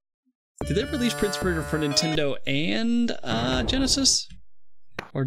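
Game music plays with a bright melody.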